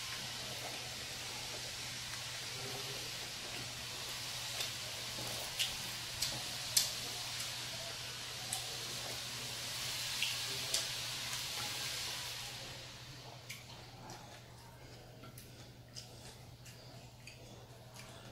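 A man pulls fried fish apart with his hands on a plate.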